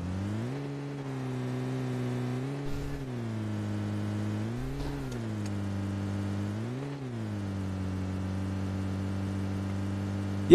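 A jeep engine drones steadily, its pitch rising and dropping as it shifts gears.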